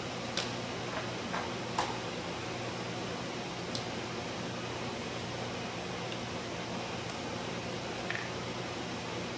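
Small plastic tubes tap and click in a rack.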